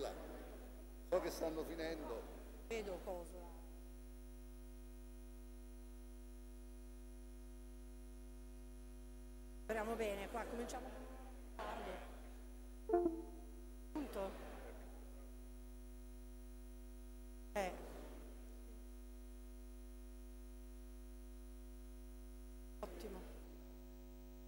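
A man speaks in short, halting phrases through a microphone in a large echoing hall.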